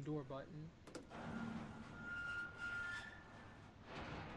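A hand presses a large button with a click.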